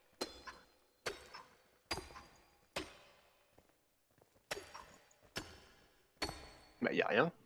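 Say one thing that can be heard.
A pickaxe strikes a stone wall with sharp ringing blows.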